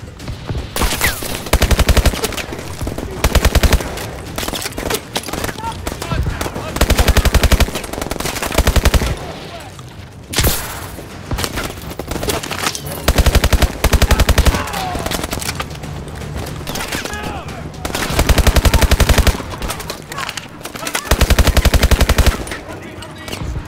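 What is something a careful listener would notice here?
An automatic rifle fires in rapid, loud bursts.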